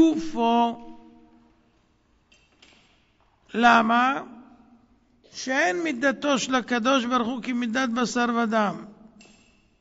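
A middle-aged man chants in a melodic voice through a microphone, in short phrases with pauses.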